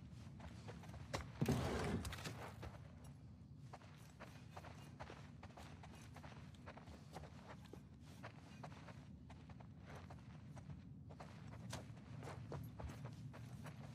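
Footsteps pad softly across a floor.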